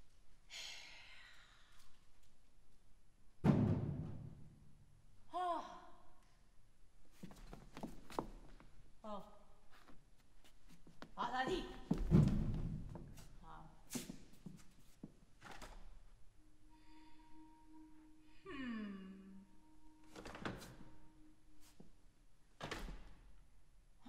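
A cello plays sparse sliding notes and sharp plucks in a large hall.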